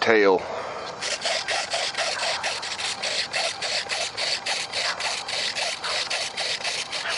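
A small motor buzzes in quick, even pulses.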